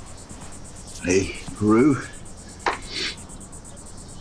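An elderly man speaks quietly nearby.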